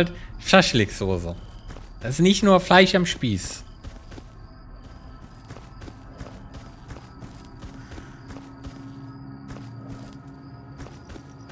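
Footsteps crunch steadily on grass and dirt.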